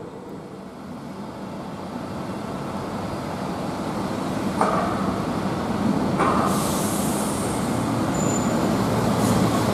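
A second bus engine rumbles, growing louder as the bus approaches.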